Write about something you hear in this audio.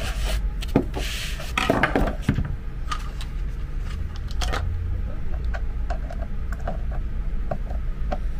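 A plastic power adapter thumps and rattles as it is set down and shifted on a mat.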